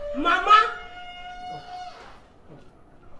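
A woman calls out loudly nearby.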